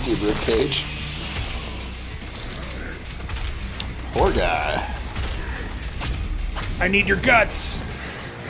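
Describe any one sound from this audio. A monster growls and roars close by.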